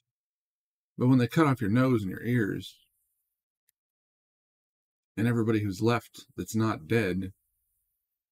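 A middle-aged man speaks calmly and closely into a microphone, in two short bursts.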